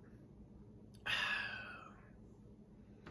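A man exhales with a satisfied sigh after drinking.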